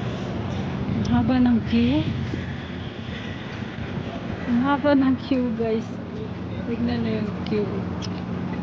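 A young woman talks nearby.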